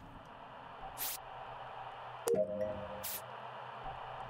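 Short electronic blips sound from a game.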